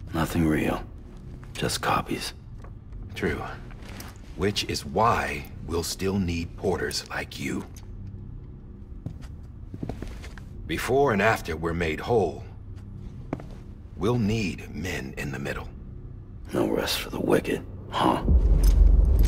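A second man answers in a calm, gravelly voice.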